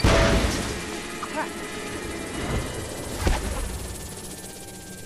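Small pieces clatter and tinkle as something breaks apart.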